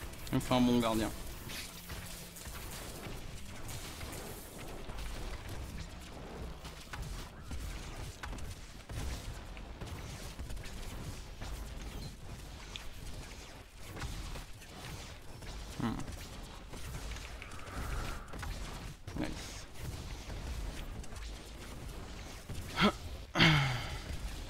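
Game spells crackle and blast in quick bursts.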